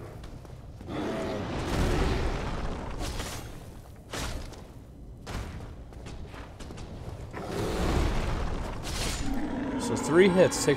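A creature roars and growls.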